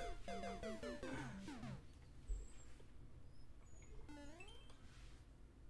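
A video game plays a short descending jingle.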